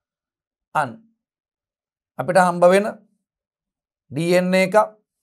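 A man speaks calmly in short phrases through a close microphone.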